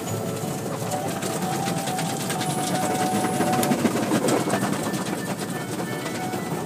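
Water sprays and splashes against a car windshield.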